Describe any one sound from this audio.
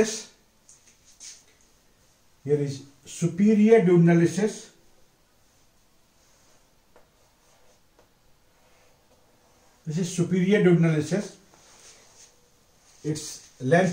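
A middle-aged man speaks calmly and clearly, in short bursts.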